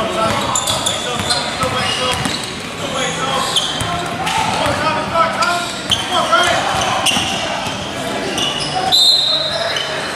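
A basketball bounces on a hardwood court in an echoing gym.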